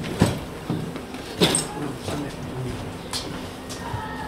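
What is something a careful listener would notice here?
A woman's high heels click across a hard floor.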